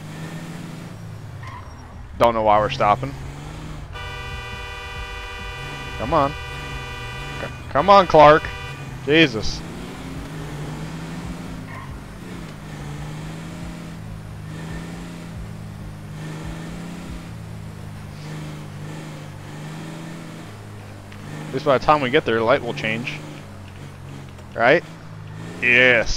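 A truck engine drones steadily as it drives along a road.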